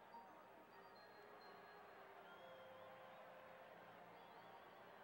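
A large stadium crowd murmurs in the distance.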